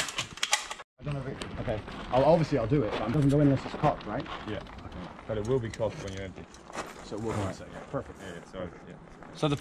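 A man speaks casually nearby, outdoors.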